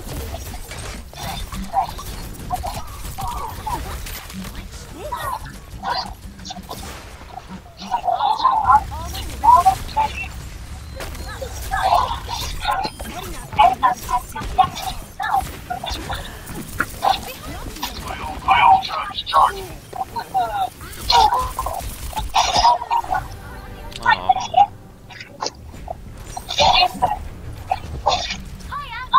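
Video game weapons fire in quick bursts of blasts and zaps.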